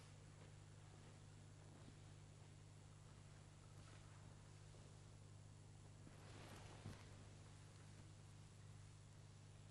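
Footsteps shuffle slowly across a stone floor in an echoing hall.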